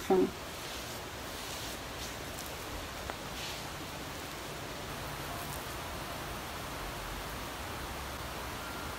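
Fingers squish and rustle softly through wet hair.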